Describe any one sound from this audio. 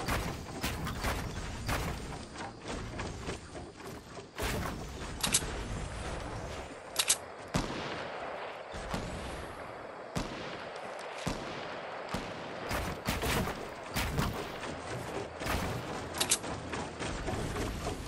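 Wooden walls are built quickly with rapid knocking and thuds.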